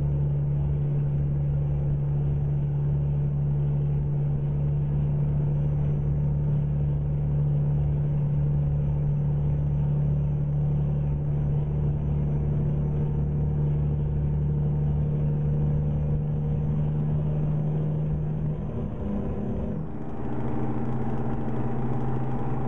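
A heavy truck engine drones steadily, with a brief change in pitch near the end as it shifts gear.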